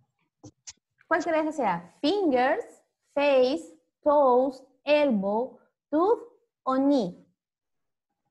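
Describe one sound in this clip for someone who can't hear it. A young child speaks in a high, sing-song voice through an online call.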